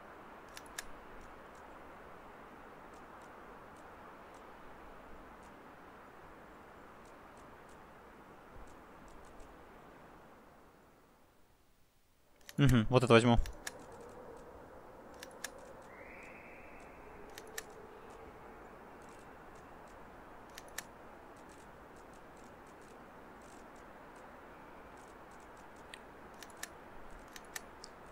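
Short soft clicks of a game menu sound now and then.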